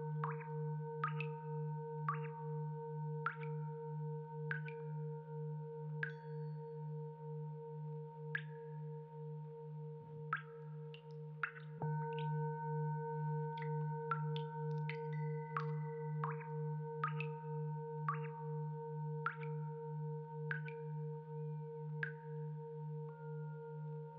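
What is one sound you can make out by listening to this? A low electronic drone pulses steadily from loudspeakers.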